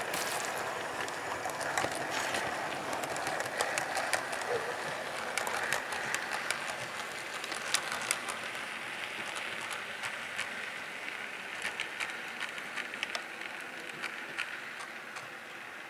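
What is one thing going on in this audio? Model train wheels click over rail joints.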